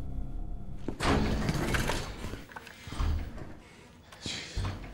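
Heavy footsteps run across a hard floor.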